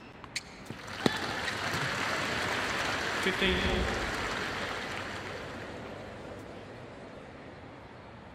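A crowd applauds and cheers, then fades.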